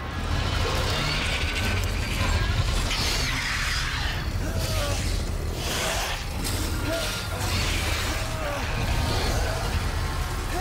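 A flock of birds flaps and screeches close by.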